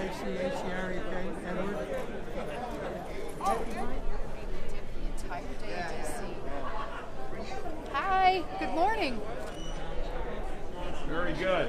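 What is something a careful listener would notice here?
Several men and women chatter in a large echoing hall.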